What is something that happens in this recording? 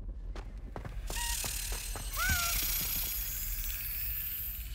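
A magic spell fires with a whooshing shimmer.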